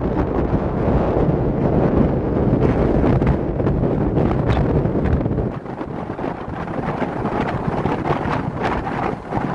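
Tyres rumble steadily on asphalt as a car drives along.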